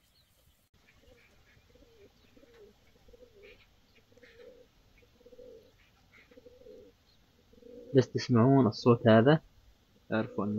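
Pigeons coo softly in a steady rhythm.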